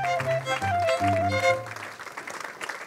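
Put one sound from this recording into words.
A small ensemble with a double bass plays a final chord outdoors.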